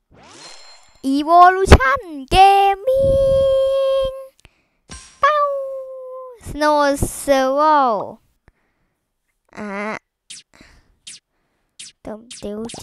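A young man exclaims and talks with animation close to a microphone.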